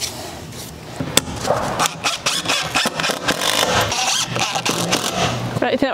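A cordless drill whirs as it drives screws into wood.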